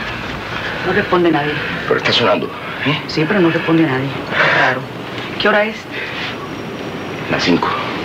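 A middle-aged man speaks agitatedly nearby.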